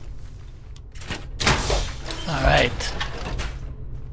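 Heavy metal footsteps clank on a hard floor.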